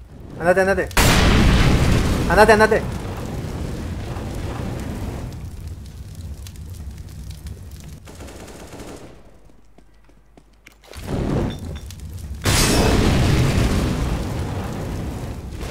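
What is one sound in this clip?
Fire roars and crackles in a loud whoosh.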